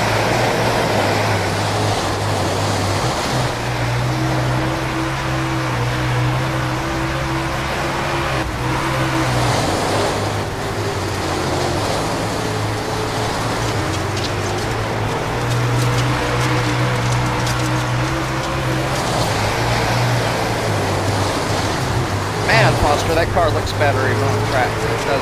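A race car engine roars and revs steadily.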